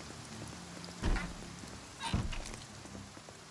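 A door opens and bangs shut.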